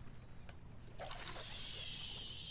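A fishing rod whooshes as a line is cast.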